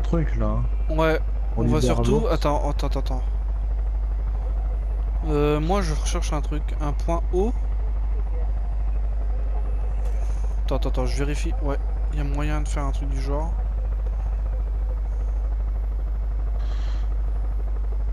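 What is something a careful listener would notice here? A helicopter's engine and rotor drone in flight.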